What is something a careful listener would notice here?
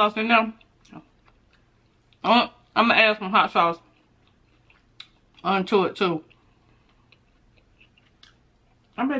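Food crunches softly as a young woman chews.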